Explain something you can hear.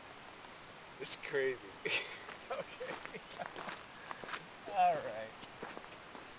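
A man speaks calmly at a short distance outdoors.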